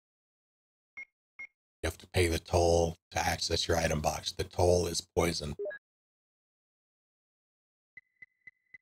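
A menu cursor beeps softly several times.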